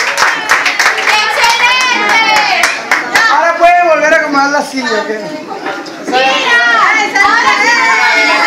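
A young woman sings along loudly and cheerfully, close by.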